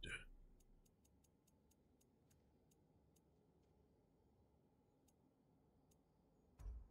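Soft menu clicks tick quickly as a selection scrolls.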